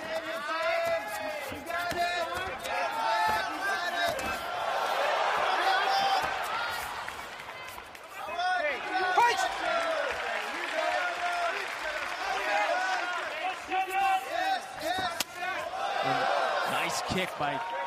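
Bare feet thud and slap on a padded mat.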